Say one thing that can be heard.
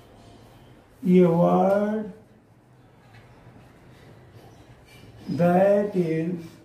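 An elderly man speaks in short, drawn-out phrases close by.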